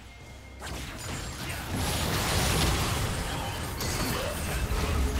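Game spell effects crackle and burst loudly.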